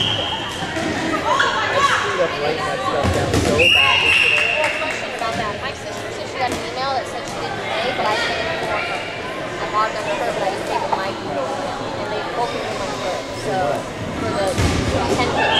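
Many young women chatter and call out in a large echoing hall.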